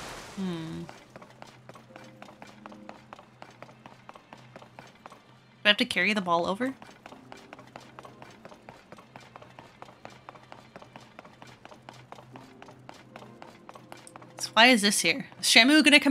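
Quick footsteps patter on a stone floor.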